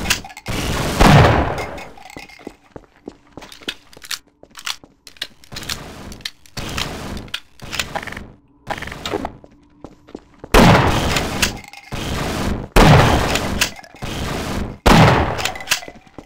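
A shotgun fires booming blasts that ring out and fade.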